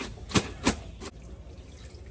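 Wet clothes splash and slap in water.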